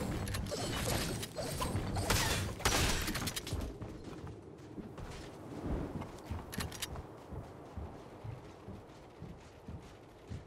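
Wooden walls are built quickly with sharp knocking clicks.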